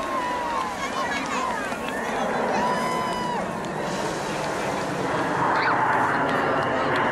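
Jet planes roar overhead in a steady, loud rush.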